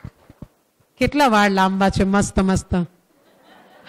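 A middle-aged woman sings a short phrase into a microphone.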